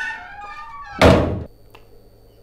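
A door shuts with a bang.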